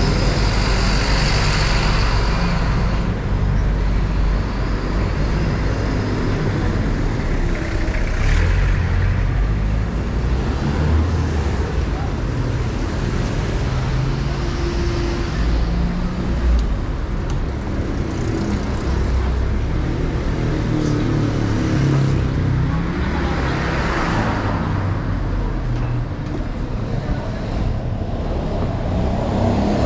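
Cars drive past on a city street.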